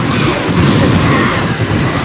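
A blade whooshes through the air in a swing.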